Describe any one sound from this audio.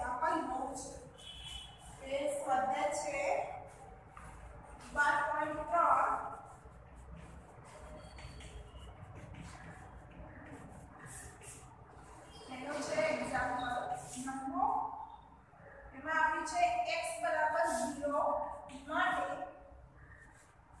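A young woman speaks calmly nearby, explaining.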